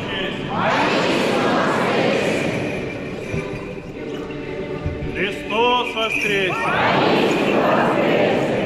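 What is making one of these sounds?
A large crowd of men and women shouts a reply in unison, echoing in a large hall.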